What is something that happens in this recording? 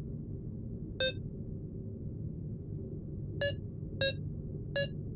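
Electronic buttons beep in short tones.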